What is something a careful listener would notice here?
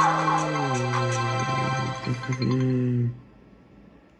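A short cheerful victory tune plays from a computer's speakers and stops abruptly.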